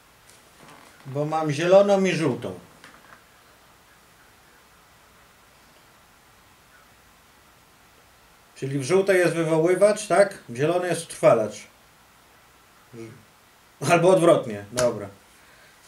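A middle-aged man talks into a phone close by, in short calm bursts.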